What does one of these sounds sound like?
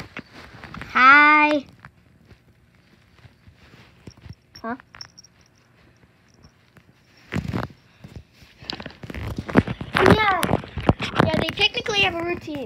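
A kitten meows loudly and repeatedly, close by.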